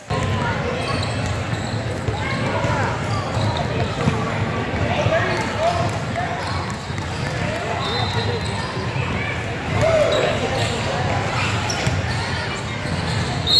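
A crowd of spectators cheers and calls out in a large echoing gym.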